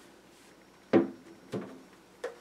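A plastic helmet knocks on a table.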